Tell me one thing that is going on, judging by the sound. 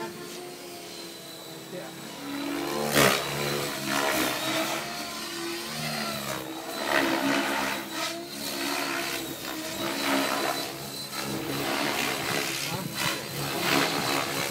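Rotor blades of a model helicopter whoosh in pulses during flips.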